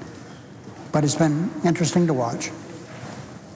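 An elderly man speaks slowly and deliberately into a microphone.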